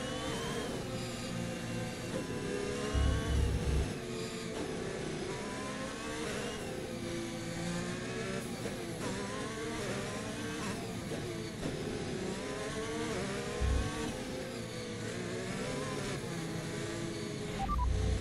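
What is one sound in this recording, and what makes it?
A racing car engine screams at high revs, rising through the gears and dropping as it shifts down.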